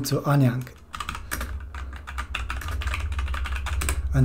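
Keys clatter on a computer keyboard in quick taps.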